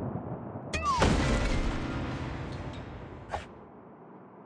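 A heavy crash sounds with a clatter of debris.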